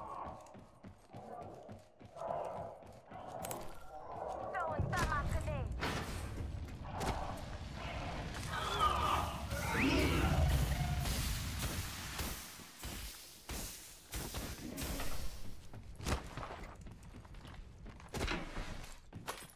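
Footsteps run quickly across hard floors and ground.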